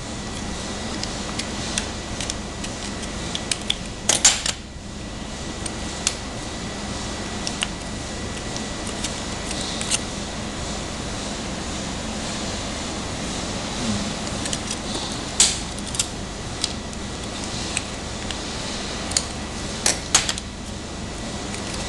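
Scissors snip through a plastic wrapper.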